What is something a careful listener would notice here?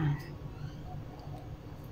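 A metal spoon scrapes lightly against pasta in a dish.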